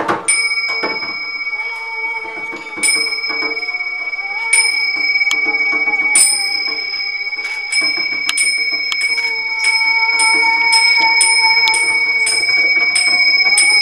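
Bowls give off a long, steady ringing hum.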